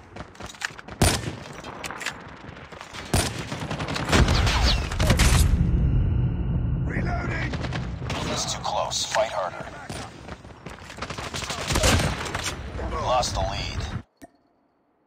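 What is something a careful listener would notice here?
Loud rifle shots crack and echo.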